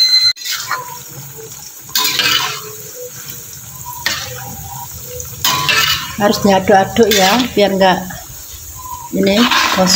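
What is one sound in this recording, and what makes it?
A metal spatula scrapes and clanks against a metal pan.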